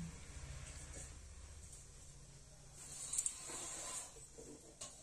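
Oil pours into a metal pot.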